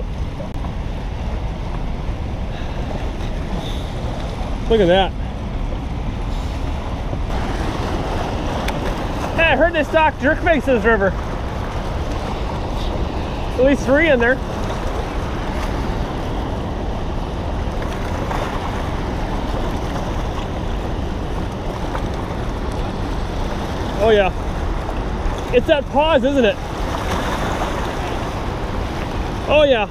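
A river rushes and splashes steadily over rapids nearby.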